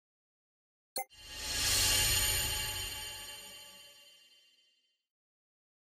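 A loud electronic burst swells and slowly fades away.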